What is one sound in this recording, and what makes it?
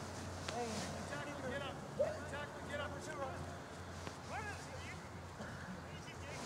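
Young men shout to each other in the distance outdoors.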